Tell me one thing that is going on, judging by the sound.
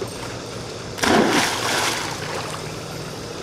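Water splashes loudly as a dog plunges in.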